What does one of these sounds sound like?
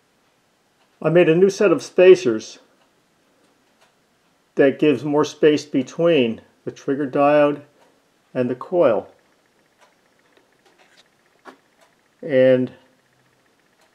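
A man speaks calmly and close by, in short phrases with pauses.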